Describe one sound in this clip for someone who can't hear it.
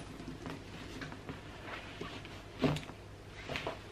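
A bag rustles as things are handled inside it.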